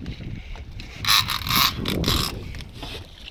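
A fishing reel buzzes as line runs out.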